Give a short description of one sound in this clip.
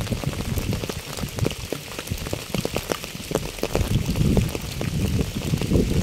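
Raindrops patter steadily on a wet path and fallen leaves.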